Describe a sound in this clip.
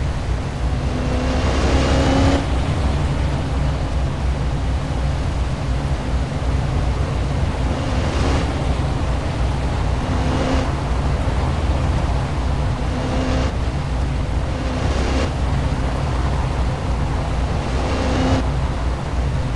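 Other cars whoosh past close by.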